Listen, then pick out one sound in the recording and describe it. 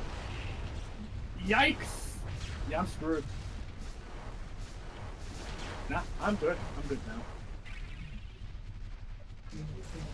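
A heavy robot walks with thudding metal footsteps.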